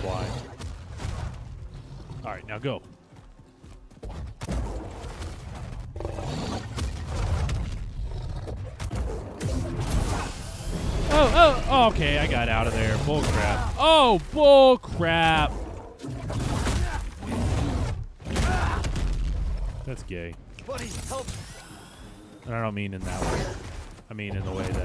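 A young man talks with animation, close into a microphone.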